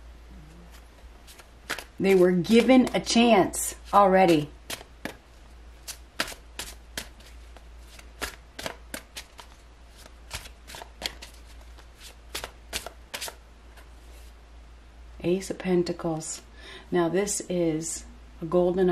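Playing cards are shuffled by hand with quick soft clicks and flicks.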